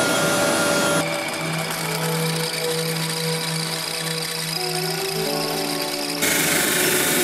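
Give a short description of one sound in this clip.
A drill press whirs as it bores into wood.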